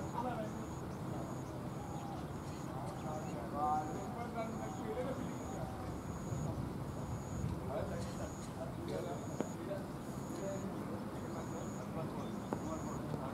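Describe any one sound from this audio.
Men call out and chatter at a distance outdoors.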